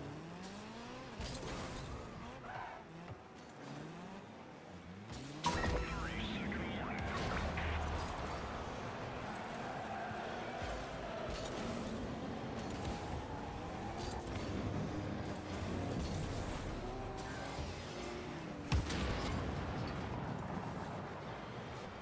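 A car engine revs and hums.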